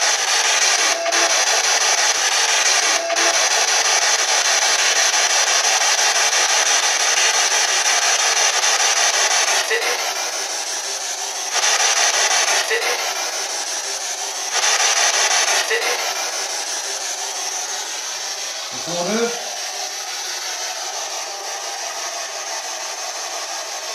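A handheld radio device hisses with loud, steady static close by.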